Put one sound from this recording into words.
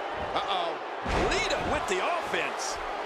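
A body slams heavily onto a wrestling mat with a thud.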